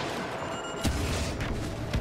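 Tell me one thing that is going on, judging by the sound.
A jet pack roars as it fires.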